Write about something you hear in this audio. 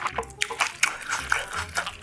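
A metal spoon scrapes a pan of fried rice.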